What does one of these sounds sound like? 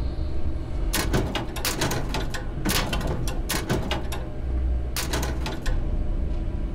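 Metal locker doors clatter open in quick succession.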